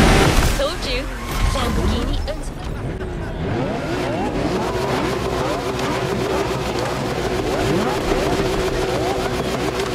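Several sports car engines rumble and rev as the cars roll past.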